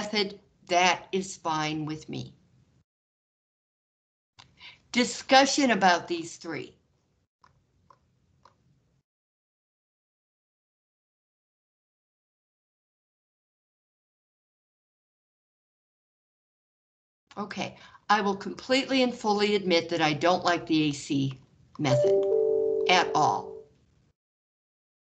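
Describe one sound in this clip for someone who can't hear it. A woman explains calmly through an online call, with pauses.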